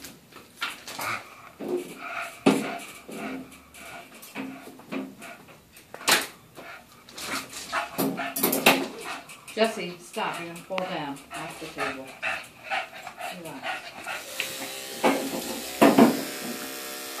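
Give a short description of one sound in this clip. Two dogs play-fight, growling and snarling.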